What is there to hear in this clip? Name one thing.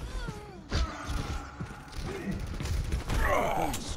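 A heavy gun fires a rapid burst close by.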